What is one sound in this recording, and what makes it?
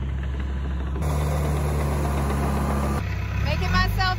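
A bulldozer engine rumbles.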